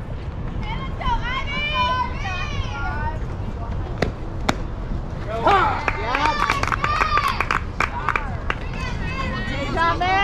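Young girls shout and cheer from nearby.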